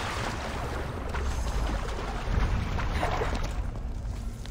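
Water splashes as a swimmer climbs out.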